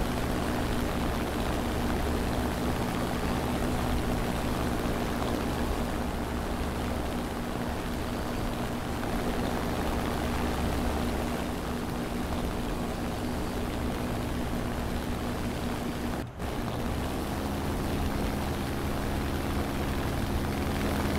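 Wind rushes past the aircraft.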